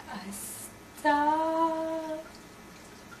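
A young woman sings a short, wavering high note close by.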